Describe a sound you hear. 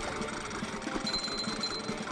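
A sparkling chime rings out.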